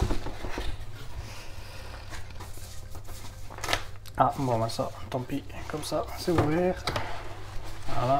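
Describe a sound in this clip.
Cardboard scrapes and rustles as a box is handled.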